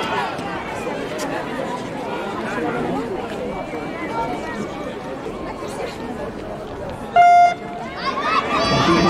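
Inline skates roll and scrape on a smooth track.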